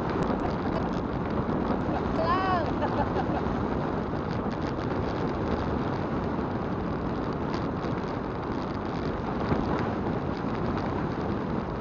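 Tyres roll steadily over a paved road.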